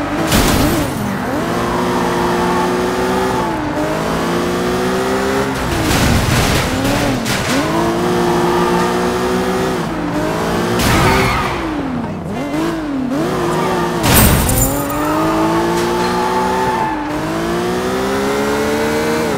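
A car engine revs hard, rising and falling as gears shift.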